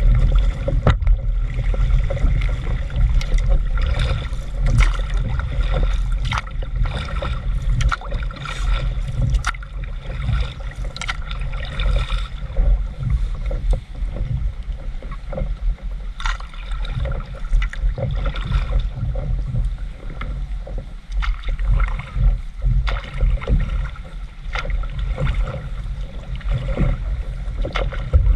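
Water laps and splashes against the hull of a small boat.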